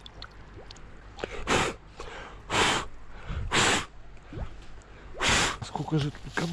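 Water splashes and gurgles as a plastic canister is dipped into a stream.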